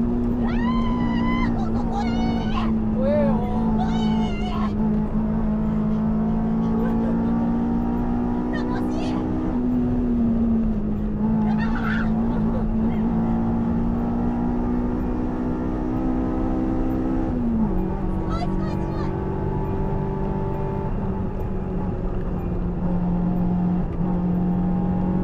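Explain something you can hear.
A car engine drones steadily, shifting gear now and then.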